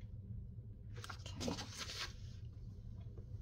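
Paper slides and rustles on a table.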